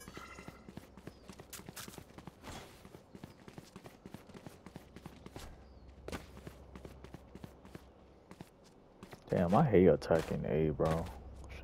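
Quick footsteps patter steadily on hard ground.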